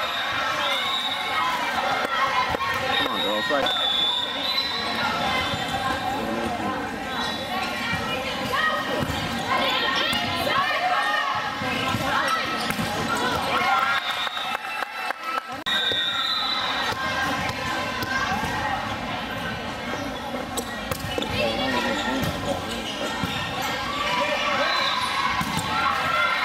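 Young women shout and cheer in a large echoing hall.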